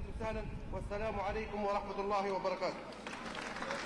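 A middle-aged man reads out a statement into a microphone.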